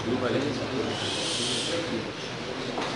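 A board eraser rubs across a whiteboard.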